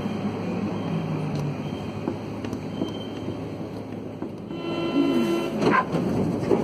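A train rumbles steadily along the tracks through a station.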